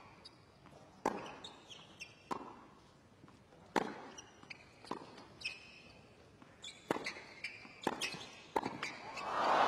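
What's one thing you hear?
Tennis balls are struck sharply back and forth with rackets.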